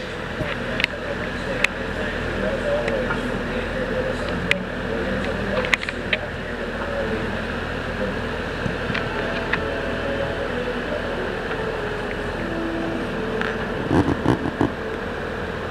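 Construction machinery clanks and knocks now and then.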